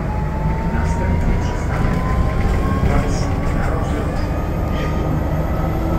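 A bus rattles and creaks as it rolls over the road.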